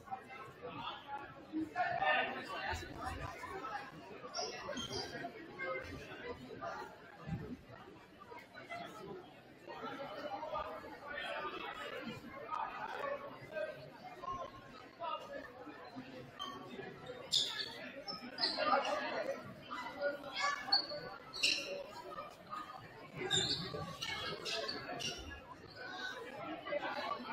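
A crowd chatters steadily in a large echoing gym.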